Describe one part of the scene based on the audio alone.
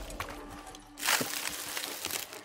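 A heavy barrier of roots crashes apart.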